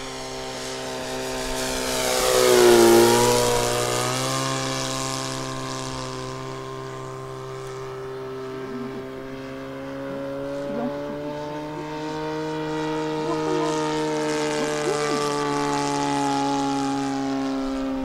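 A small propeller plane's engine drones overhead, roaring loudest as it passes close and dropping in pitch as it flies away.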